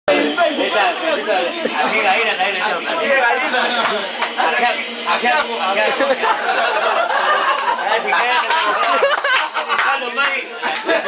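A crowd of men and women talk over one another close by.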